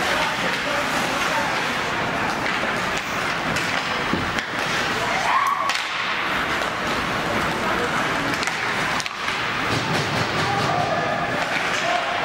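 Spectators shout in an echoing rink.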